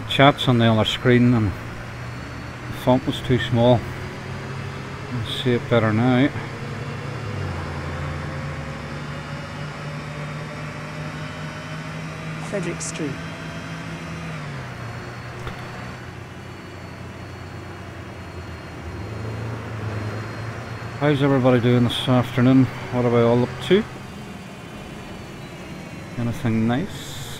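A city bus diesel engine hums while the bus drives along a street.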